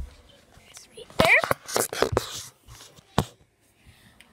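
Fabric rustles and a phone knocks against things as it is handled.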